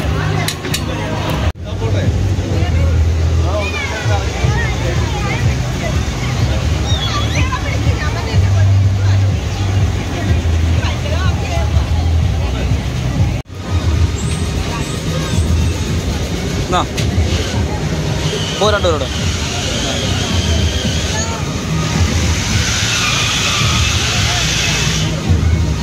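Fairground ride machinery rumbles and hums steadily.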